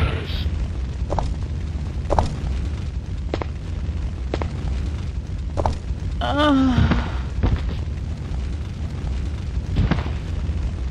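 Footsteps thud on stone at a steady walking pace.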